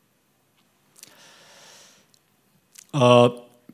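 A man speaks briefly into a microphone after a long silence.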